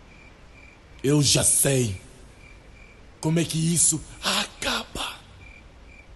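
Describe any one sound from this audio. A man speaks in a low, deep voice, close by.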